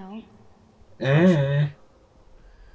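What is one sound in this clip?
A man speaks in a low, deep voice.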